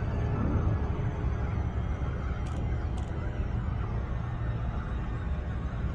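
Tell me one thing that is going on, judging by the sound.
A deep engine hum drones steadily.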